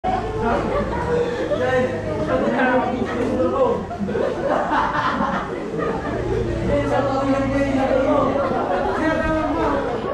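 Young people chatter and talk over one another nearby.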